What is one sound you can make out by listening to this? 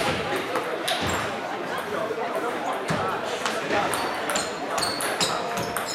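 A ping pong ball clicks back and forth off paddles and a table.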